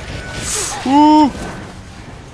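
A young man exclaims loudly and close to a microphone.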